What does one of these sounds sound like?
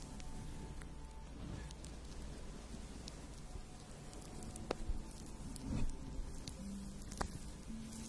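A young woman whispers softly into a microphone, very close.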